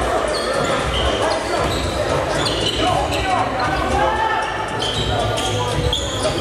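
Men call out to each other across an echoing gym.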